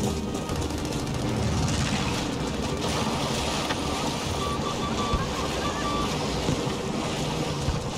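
Water splashes as someone wades through shallow surf.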